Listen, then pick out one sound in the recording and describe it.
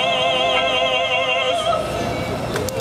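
A woman sings with a strong vibrato through a microphone outdoors.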